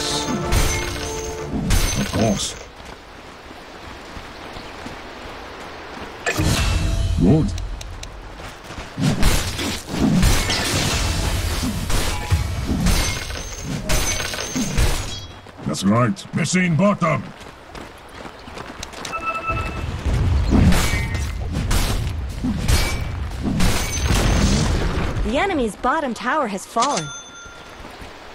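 Video game weapons clash and strike during a battle.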